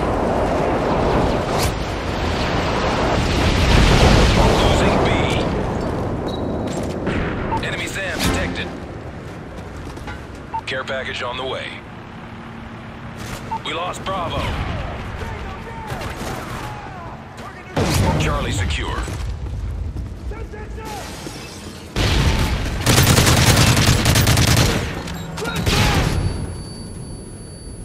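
Guns fire in loud bursts of shots.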